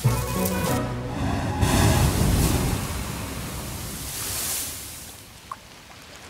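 Sea waves crash and splash against rocks.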